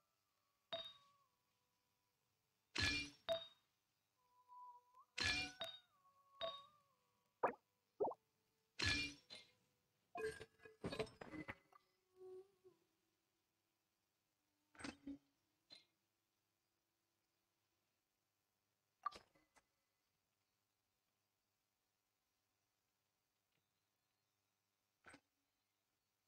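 Short electronic chimes and clicks sound now and then.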